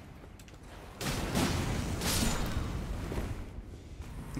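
A blade strikes with a loud, crackling burst.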